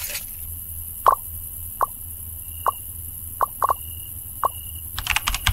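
Short menu clicks and blips sound at intervals.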